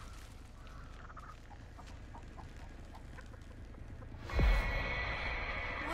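Footsteps scuff on a hard dirt floor.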